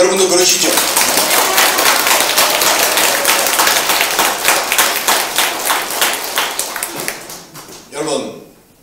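A crowd applauds loudly in a large room.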